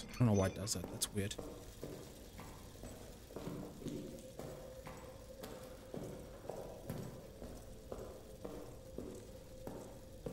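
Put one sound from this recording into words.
Footsteps shuffle slowly on a hard floor.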